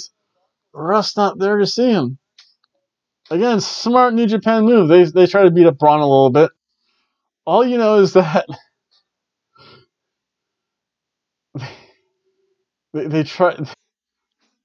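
A middle-aged man talks animatedly into a close microphone, in bursts with pauses.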